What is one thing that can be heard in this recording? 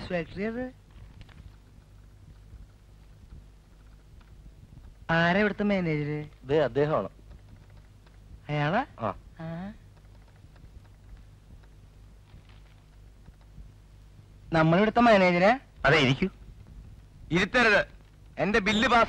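A middle-aged man speaks in short, strained bursts close by.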